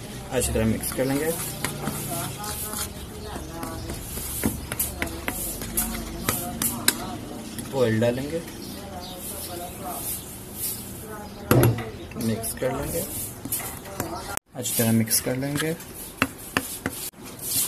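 A metal spoon scrapes and clinks against a bowl while stirring a thick paste.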